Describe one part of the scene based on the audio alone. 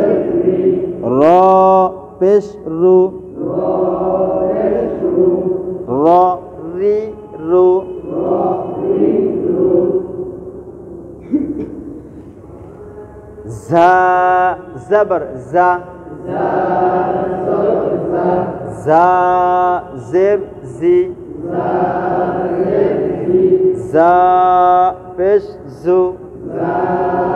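A man chants and recites aloud in a melodic voice nearby.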